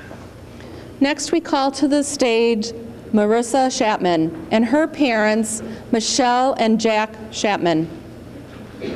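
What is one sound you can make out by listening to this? A woman speaks calmly through a microphone and loudspeakers.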